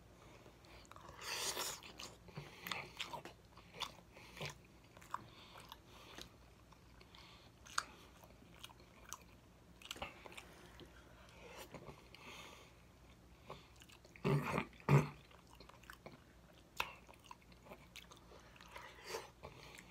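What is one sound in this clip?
A man sucks loudly on his fingers.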